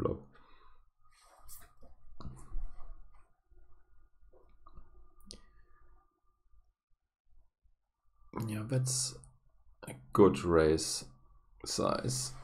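A man talks calmly and close to a microphone.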